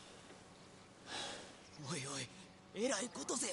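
A young man speaks in a low, rough voice close by.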